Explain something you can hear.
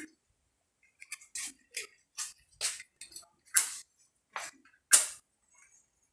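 A lighter clicks several times.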